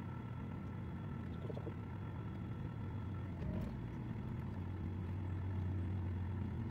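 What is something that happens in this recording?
A boat engine chugs steadily with a low hum.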